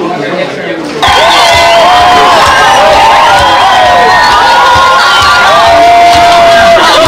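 A crowd sings loudly outdoors.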